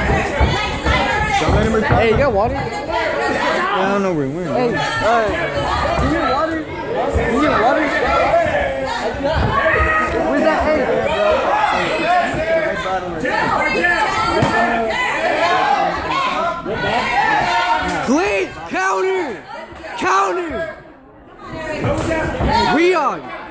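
A crowd of spectators shouts and cheers loudly nearby, in an echoing hall.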